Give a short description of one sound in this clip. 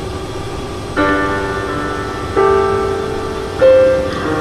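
A piano plays notes.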